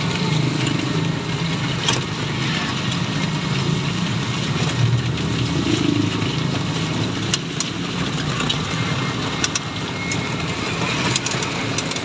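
A small vehicle's engine hums steadily while driving.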